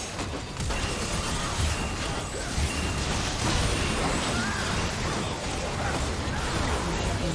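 Spells and weapons crash and whoosh in a frantic game battle.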